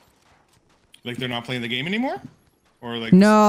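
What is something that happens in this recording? A young man speaks loudly and with animation into a close microphone.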